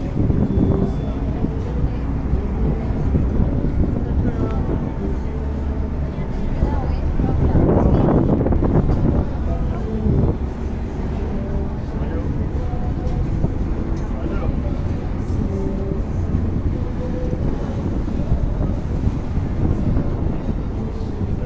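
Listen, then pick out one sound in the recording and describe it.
Water washes against a boat's hull.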